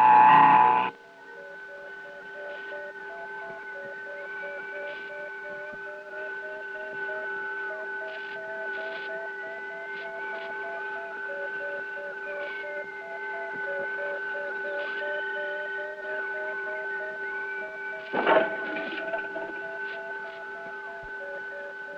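An electronic machine hums with a steady high tone.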